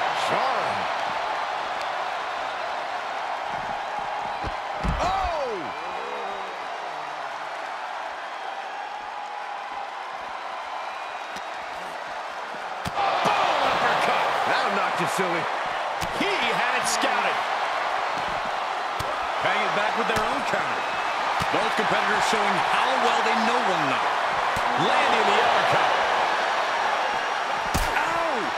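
A large crowd cheers and roars throughout in a big echoing arena.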